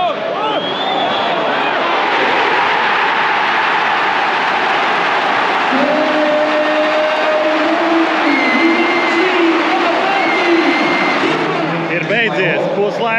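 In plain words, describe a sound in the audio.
A large stadium crowd roars and cheers loudly all around.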